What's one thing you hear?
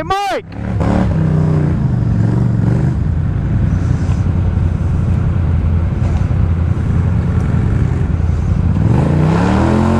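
ATV engines rev while stuck in thick mud.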